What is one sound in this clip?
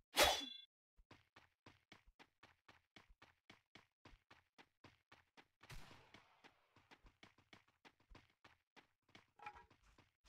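Quick running footsteps thud over the ground.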